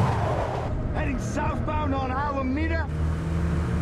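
A man speaks into a handheld radio close by.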